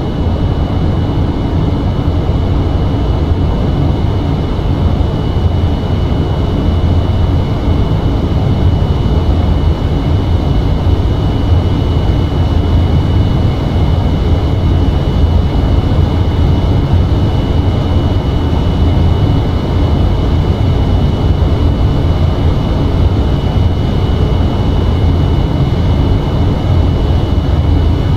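Jet engines roar with a steady low rumble.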